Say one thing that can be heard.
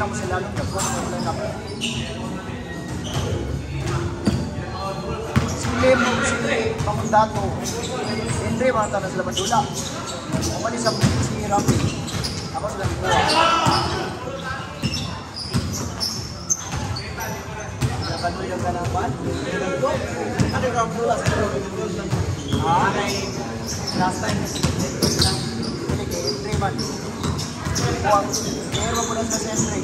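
A basketball bounces on a hard court, echoing in a large hall.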